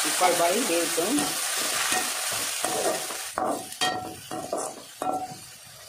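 A metal spatula scrapes and clanks against a pan.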